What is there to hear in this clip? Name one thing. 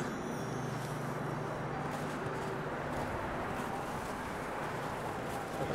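Horse hooves crunch in snow.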